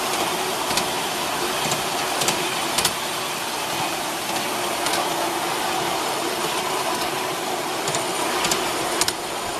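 Train wheels click over rail joints now and then.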